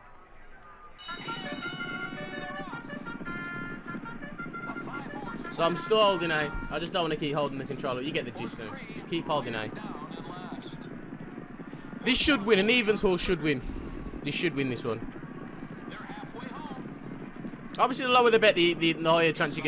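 Horses gallop on turf.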